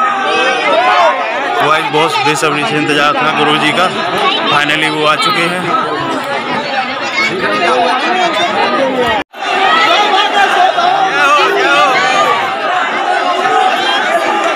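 A large crowd chatters and shouts loudly outdoors.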